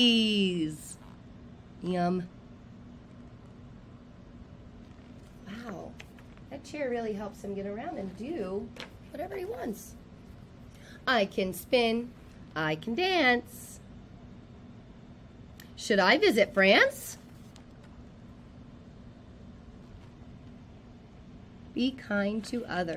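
A woman reads aloud with animation, close to a microphone.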